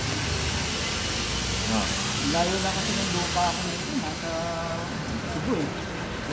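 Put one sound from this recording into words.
A plastic bag crinkles as hands handle it.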